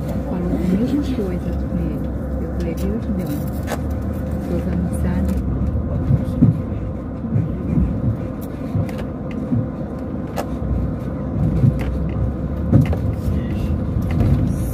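A vehicle engine hums steadily from inside a cab.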